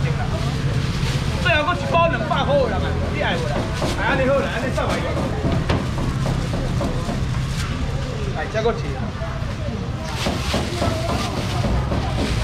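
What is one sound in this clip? A busy market crowd murmurs in the background.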